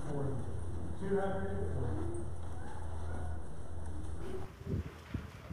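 A man speaks through a microphone over a loudspeaker.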